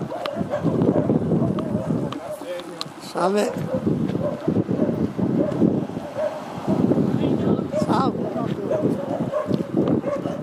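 Runners' footsteps patter on an asphalt road.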